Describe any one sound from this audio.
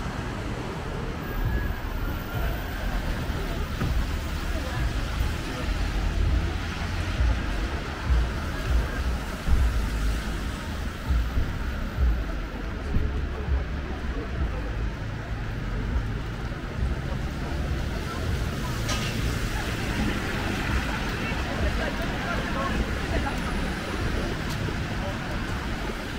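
City traffic hums steadily along a wet street outdoors.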